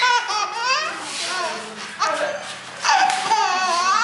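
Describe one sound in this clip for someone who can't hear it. A baby laughs and squeals happily close by.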